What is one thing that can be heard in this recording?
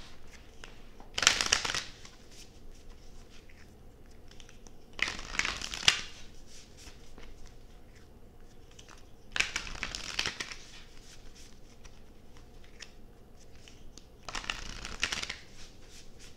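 Playing cards are shuffled in brief riffles.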